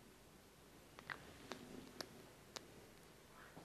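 A small brush clicks against the rim of a plastic bottle.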